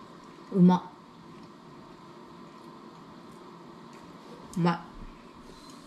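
A young woman close by exclaims a short word with pleasure.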